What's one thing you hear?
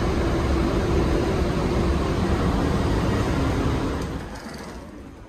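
A commuter train coach rumbles along the tracks.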